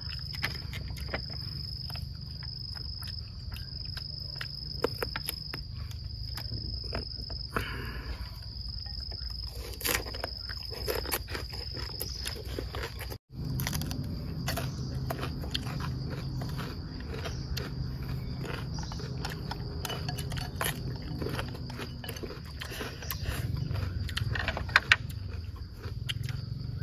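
Chopsticks click against bowls and plates.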